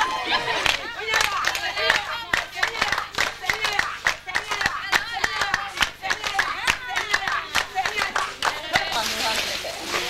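People clap their hands in rhythm.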